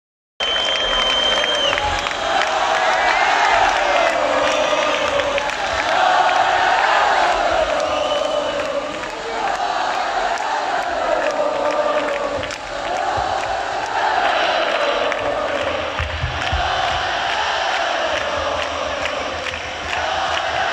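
A large crowd sings along loudly.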